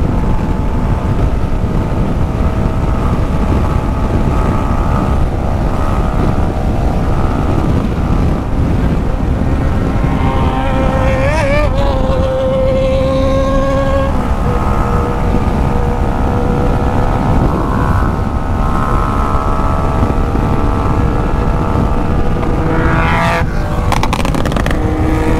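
Wind roars steadily past the rider.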